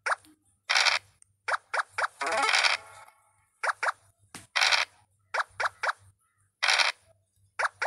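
A rolling die rattles in short bursts.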